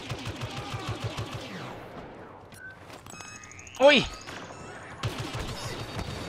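Blaster guns fire in short bursts.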